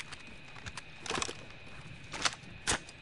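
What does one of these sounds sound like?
Metal clicks and clacks as guns are handled.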